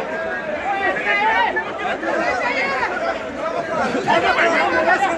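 A large crowd of men shouts and clamours close by in an echoing hall.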